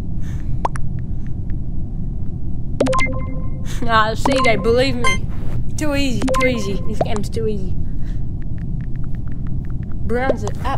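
Soft keyboard clicks tap as a message is typed on a phone.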